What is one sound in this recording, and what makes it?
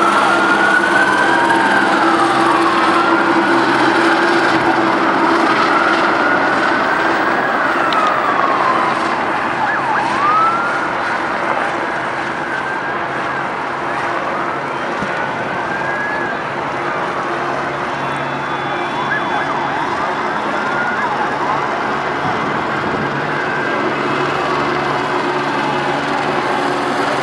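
Sirens wail nearby, rising and falling.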